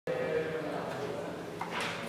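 A white cane taps on a hard floor.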